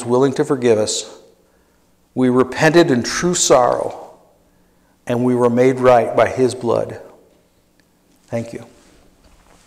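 An elderly man speaks slowly and calmly into a microphone in an echoing hall.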